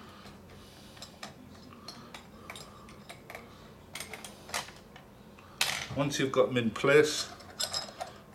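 Metal parts of a door handle click and scrape as they are fitted together.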